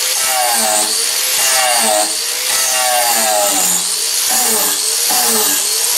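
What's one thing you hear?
An angle grinder whines loudly as it sands and grinds a wooden branch, its pitch rising and dipping as it presses into the wood.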